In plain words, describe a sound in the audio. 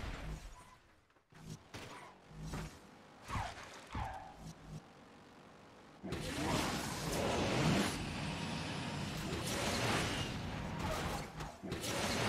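Cars crash and scrape with loud bangs.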